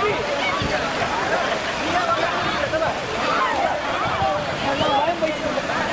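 Children shout and laugh in a pool.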